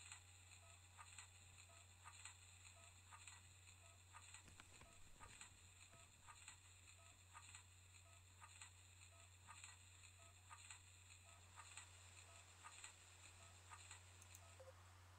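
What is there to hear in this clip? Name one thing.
Electronic game music plays with a steady, repeating beat.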